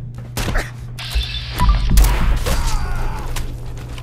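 Gunfire bursts out loudly with heavy booms and echoes.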